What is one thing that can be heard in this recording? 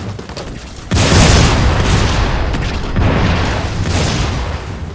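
A heavy hammer smashes down with a loud booming blast.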